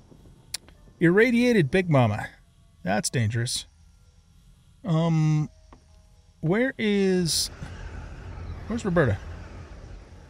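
An older man talks with animation into a microphone.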